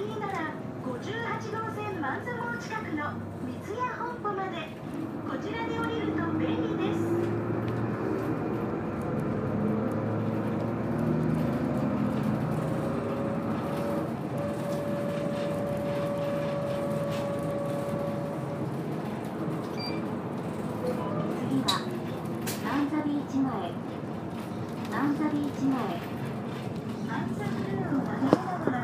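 A bus engine hums and whines, rising and falling in pitch as the bus drives along.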